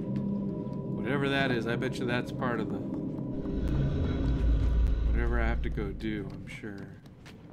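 A man talks into a microphone with animation, close by.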